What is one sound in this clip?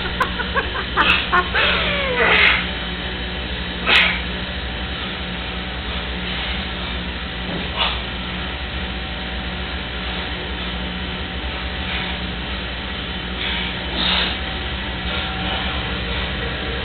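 Young men grunt and strain close by.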